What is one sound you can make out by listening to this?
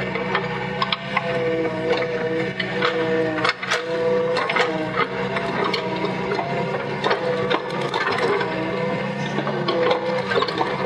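Metal tracks clank and rattle as an excavator rolls over loose soil.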